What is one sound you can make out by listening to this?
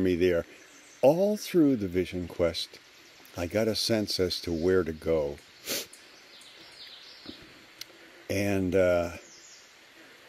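An elderly man talks calmly and close by, in short bursts with pauses.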